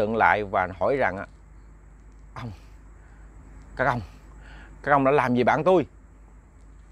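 A young man speaks calmly and clearly into a close microphone, in short bursts with pauses.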